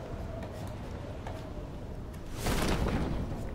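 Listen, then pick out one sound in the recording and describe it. Wind rushes loudly past a falling skydiver.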